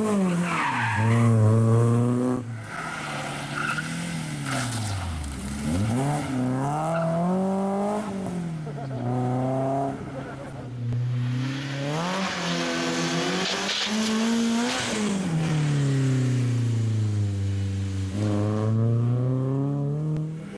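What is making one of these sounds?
A rally car engine revs hard and roars as the car speeds past, with pitch rising and falling through gear changes.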